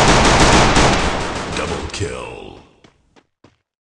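A pistol shot rings out and fades.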